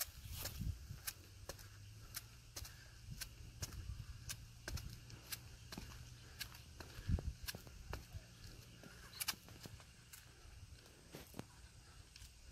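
Sneakers land with rhythmic slaps on pavement as a man jumps in place.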